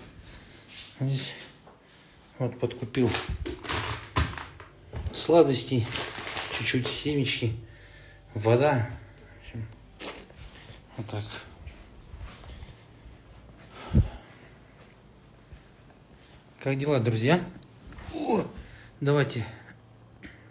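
A man talks close to the microphone with animation.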